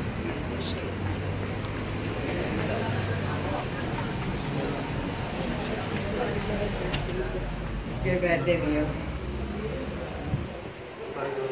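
Traffic rumbles outdoors nearby.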